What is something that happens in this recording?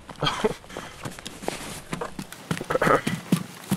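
Footsteps crunch on dry forest ground.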